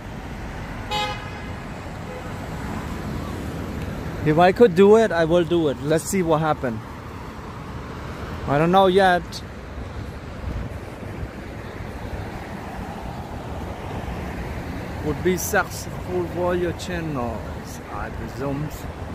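City traffic hums steadily in the street outdoors.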